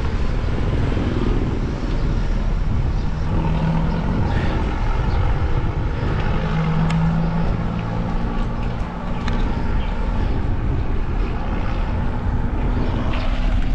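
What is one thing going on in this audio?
An engine hums steadily while riding along a road.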